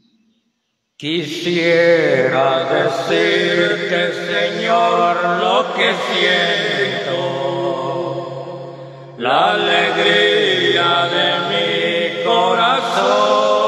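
Music plays loudly through a loudspeaker.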